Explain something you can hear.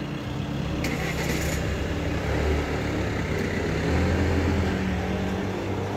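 A motor scooter pulls away.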